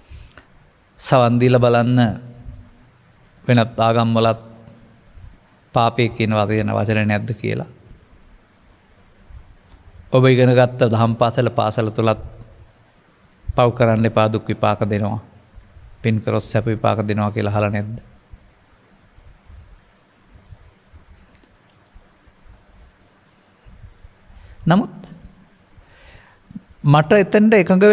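An elderly man speaks calmly into a microphone, in slow phrases with long pauses.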